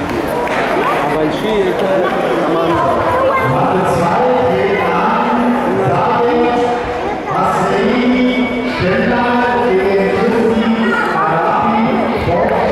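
A crowd of men and women chatters and calls out in a large echoing hall.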